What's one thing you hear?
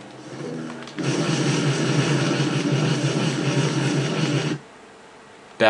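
A crackling electric blast roars.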